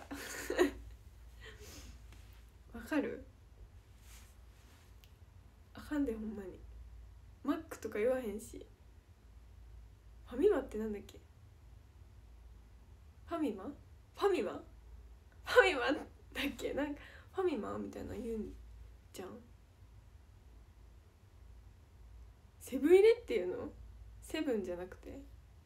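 A young woman talks casually and close to a microphone, in short bursts with pauses.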